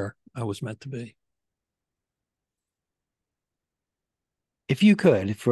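A man talks calmly into a close microphone over an online call.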